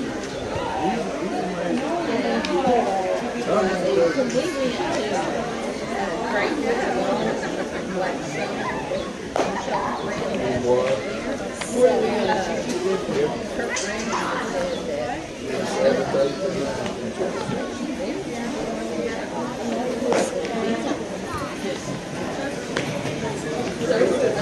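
Young girls chant and call out across an open field.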